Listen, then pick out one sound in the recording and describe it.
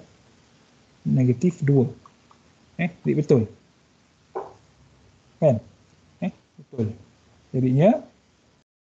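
A young man speaks calmly through an online call microphone, explaining in short phrases.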